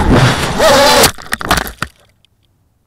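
A small aircraft thuds against the ground.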